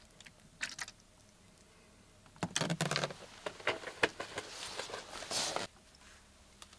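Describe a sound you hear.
Thick stain pours and glugs into a tray.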